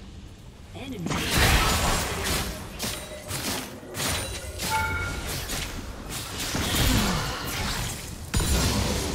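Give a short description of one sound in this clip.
Game combat hits clash and thud repeatedly.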